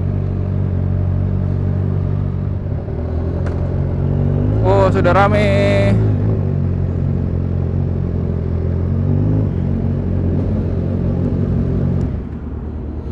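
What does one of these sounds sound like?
A motorcycle engine idles with a low, steady rumble, then cuts off.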